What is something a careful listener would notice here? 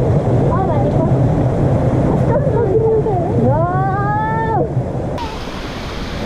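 A young girl calls out with excitement outdoors.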